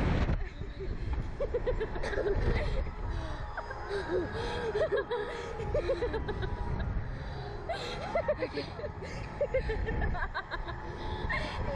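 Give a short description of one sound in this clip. Two young women laugh close by.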